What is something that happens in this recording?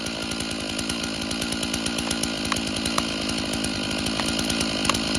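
A chainsaw idles nearby with a steady rattling hum.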